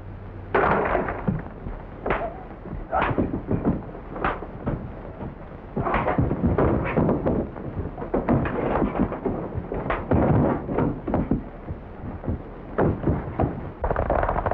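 Fists thud and bodies crash during a scuffle.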